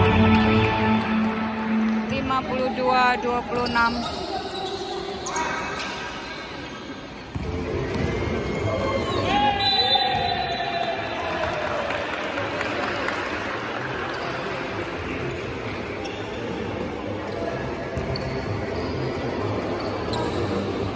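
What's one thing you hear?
Players shout across a large echoing hall.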